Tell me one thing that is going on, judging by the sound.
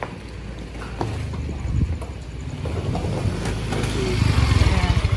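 A motorbike engine rumbles close by.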